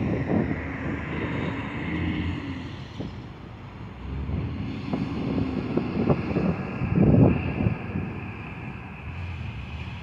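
Traffic passes by on a nearby road.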